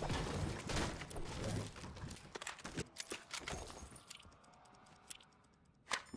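Short clicking pickup sounds from a video game chime repeatedly.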